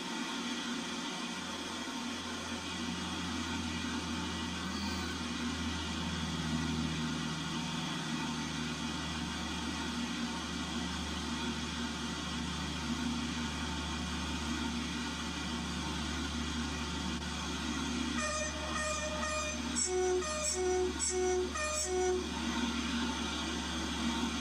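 A train engine rumbles low and steadily as it rolls along the track.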